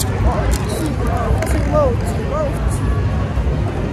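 A young boy speaks playfully close by.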